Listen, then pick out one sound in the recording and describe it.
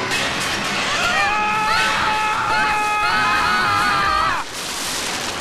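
A young woman cries out in fear close by.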